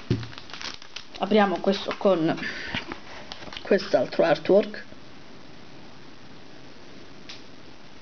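A plastic wrapper crinkles in someone's hands.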